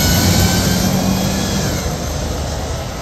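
A bus engine rumbles loudly close by, then moves off.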